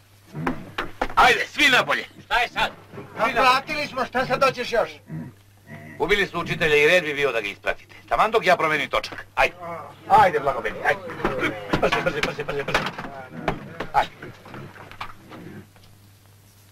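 A middle-aged man shouts orders loudly and close by.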